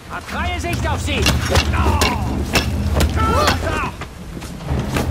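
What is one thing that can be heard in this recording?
Fists land in heavy, quick punches.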